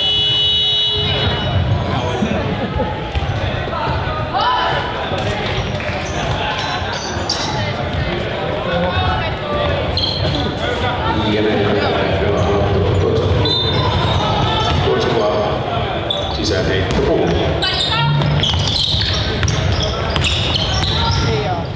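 A basketball bounces on a hard court in a large echoing hall.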